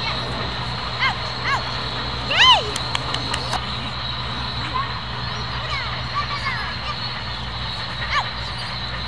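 A woman calls out from a distance outdoors.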